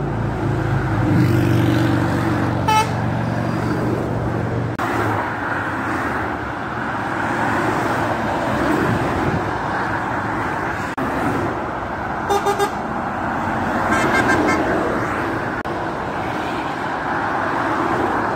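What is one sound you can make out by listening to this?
Motorway traffic roars steadily outdoors.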